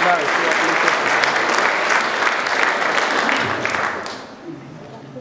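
A large mixed choir sings together in an echoing hall, then the final chord fades away.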